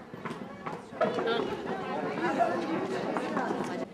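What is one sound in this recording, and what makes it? A crowd of men and women chatter as they walk in.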